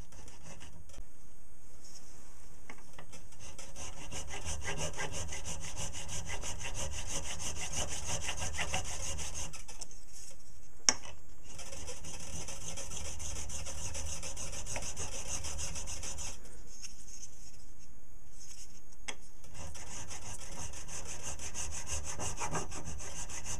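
A metal file rasps back and forth against metal in quick strokes.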